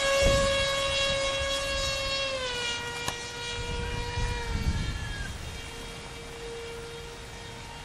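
Wind buffets outdoors in gusts.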